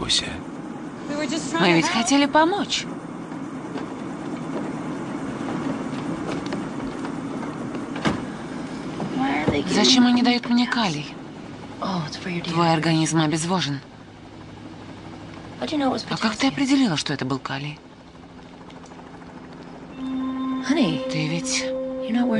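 A woman speaks urgently, close by.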